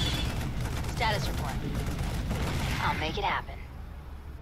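Gunfire and explosions rattle in a battle.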